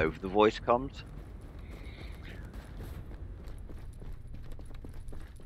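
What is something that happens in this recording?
Footsteps crunch over snow and then tap on a hard floor.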